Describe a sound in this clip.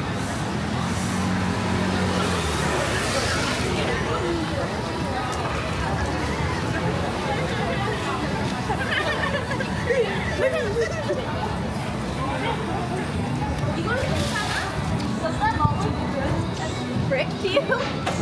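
A busy street murmurs with distant voices outdoors.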